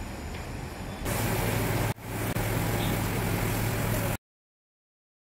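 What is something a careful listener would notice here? Water sprays from a hand shower and splashes into a basin.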